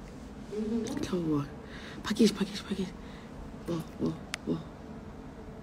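A young woman speaks casually, close to a phone microphone.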